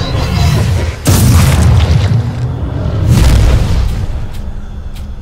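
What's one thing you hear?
A huge creature growls and roars loudly.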